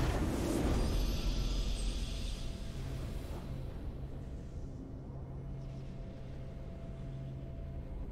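A triumphant musical chord swells and holds steadily.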